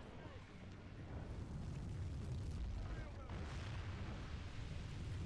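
A flaming projectile whooshes through the air.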